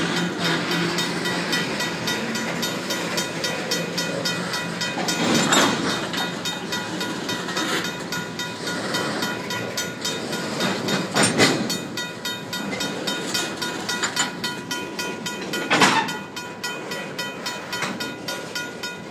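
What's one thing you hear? Tank cars of a freight train rumble and clatter past close by.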